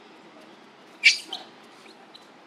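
A young monkey gives a short, sharp squeal.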